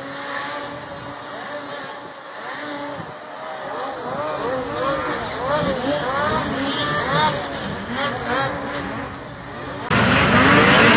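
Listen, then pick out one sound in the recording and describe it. Snowmobile engines rev and whine as they race past.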